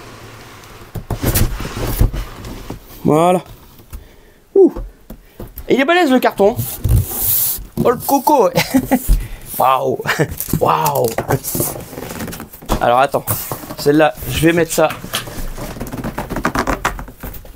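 Cardboard boxes scrape and thump as they are lifted and moved.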